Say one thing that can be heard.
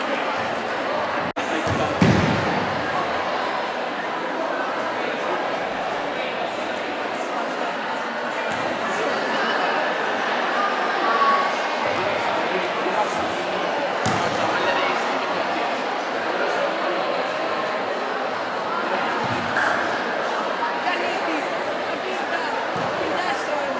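A large crowd of young people chatters steadily in an echoing hall.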